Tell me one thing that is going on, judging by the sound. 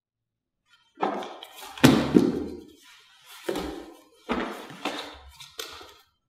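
Bodies shuffle and thump on a padded mat.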